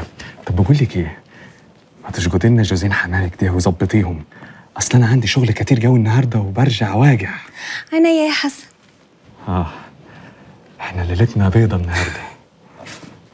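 A man speaks softly and playfully up close.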